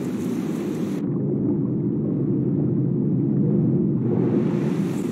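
Muffled water rushes underwater.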